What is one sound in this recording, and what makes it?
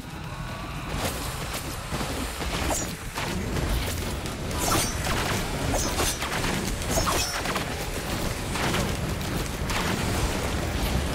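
Game combat effects whoosh and burst in quick succession.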